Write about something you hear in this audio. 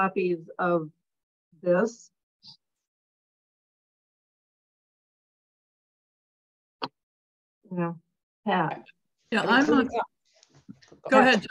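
A woman speaks with animation over an online call.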